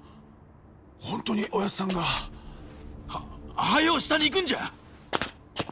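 A man speaks urgently in a low, rough voice.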